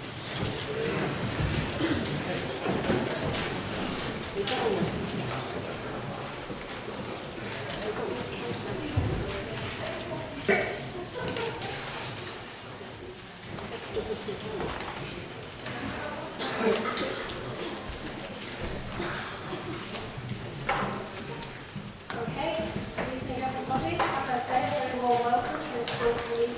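A man speaks calmly into a microphone in a large echoing chamber.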